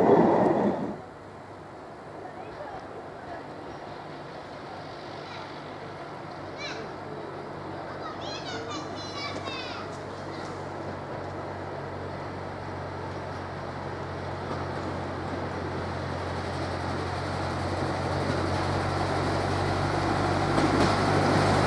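A diesel locomotive engine hums in the distance and grows louder as it approaches.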